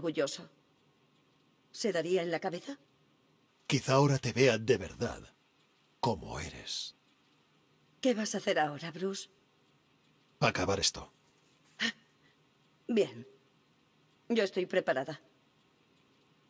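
A man speaks in a deep, low voice, close by.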